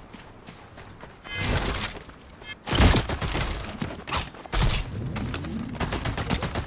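Footsteps thud quickly across grassy ground.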